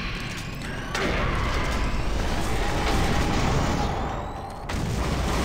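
A fireball explodes with a roar.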